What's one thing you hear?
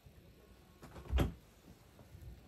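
A storage bed lid thuds as it is lifted.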